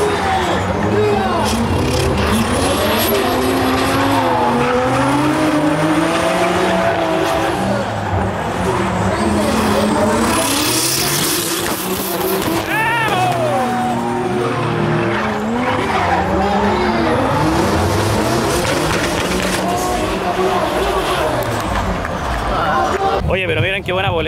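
Car engines rev loudly, rising and falling in pitch.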